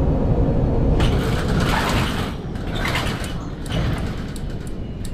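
Air brakes hiss in loud bursts as a bus stops.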